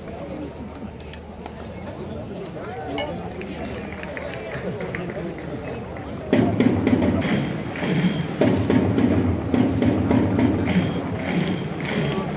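A stadium crowd murmurs and chatters in a large open space.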